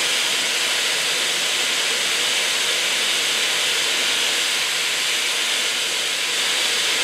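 Steam hisses loudly and steadily from an old car.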